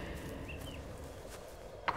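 A man's footsteps scrape over loose rocks.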